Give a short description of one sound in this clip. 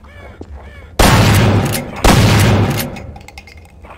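A shotgun fires two loud blasts that echo.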